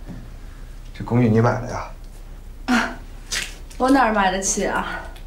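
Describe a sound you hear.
A young woman speaks lightly, close by.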